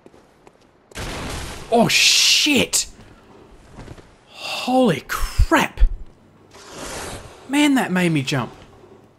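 A beast snarls and growls loudly.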